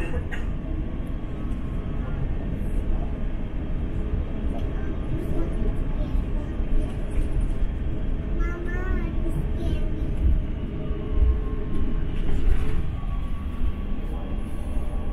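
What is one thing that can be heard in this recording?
A jet plane's engines rumble steadily from inside the cabin as the plane taxis.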